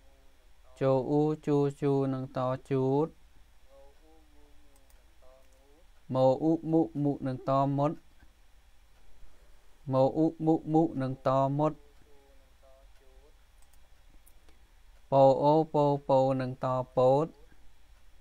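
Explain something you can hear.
A man reads out syllables slowly and clearly into a microphone, in short bursts with pauses.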